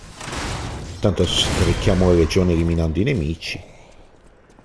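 A heavy blade swings and strikes with a loud crash.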